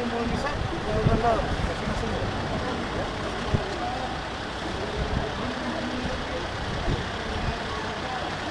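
Metal knocks and clanks against a wrecked vehicle.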